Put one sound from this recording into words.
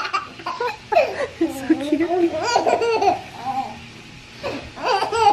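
A baby coos and squeals happily close by.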